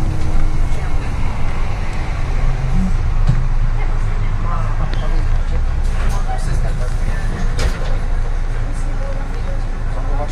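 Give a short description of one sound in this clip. A bus engine rumbles low and steady from inside the cabin.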